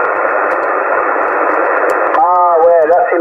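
A radio receiver hisses with loud static.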